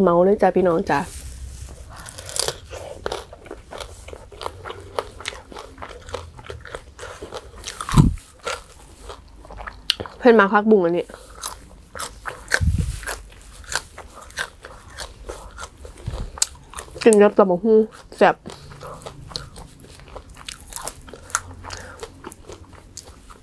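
A young woman chews and crunches food close to a microphone.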